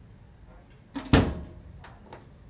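A top-loading washing machine lid bangs shut.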